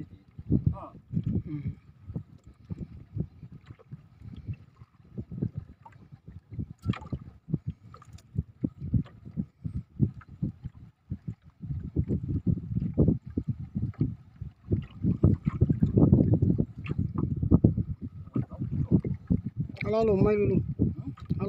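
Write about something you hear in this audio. Small waves slap against the hull of a boat.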